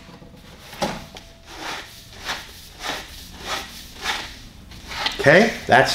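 A cloth rubs inside a plastic pipe.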